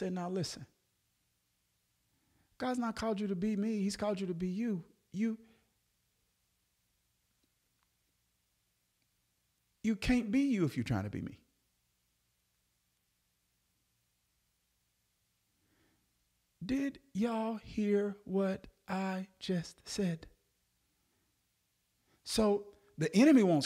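A man speaks calmly and close into a microphone, pausing between phrases.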